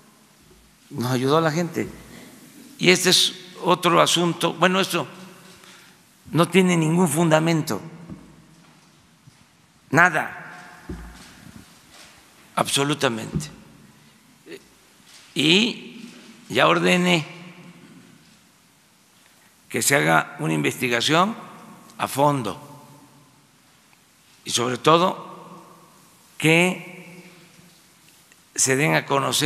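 An elderly man speaks slowly and deliberately into a microphone, with pauses, in a large echoing hall.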